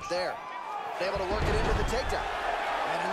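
Bodies slam heavily onto the mat.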